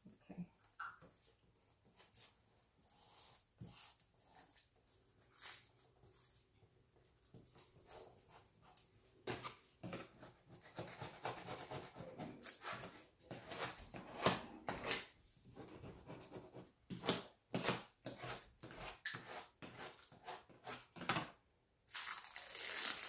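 Plastic film crinkles and rustles under hands.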